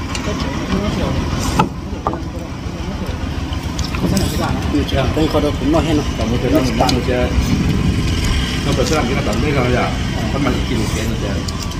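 A young woman slurps noodles loudly.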